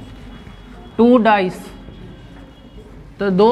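A man speaks loudly and clearly, as if teaching.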